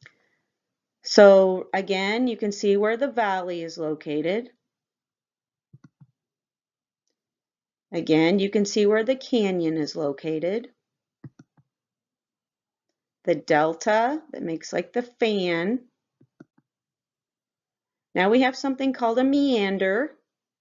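A woman speaks calmly and clearly into a close microphone, in short phrases with pauses.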